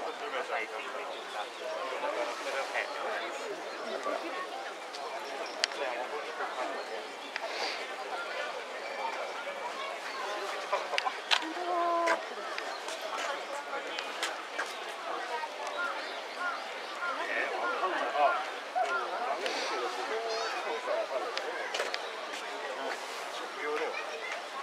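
Water laps and ripples gently as fish swim near the surface.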